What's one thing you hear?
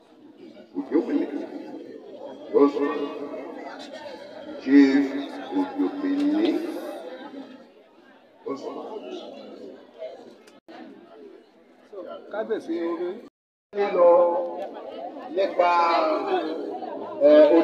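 A crowd of men and women talk and chatter close by, outdoors.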